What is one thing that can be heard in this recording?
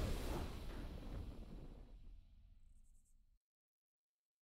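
A booming victory fanfare rings out and slowly fades away.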